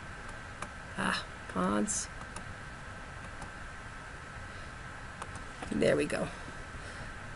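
A woman speaks briefly and calmly over an online call.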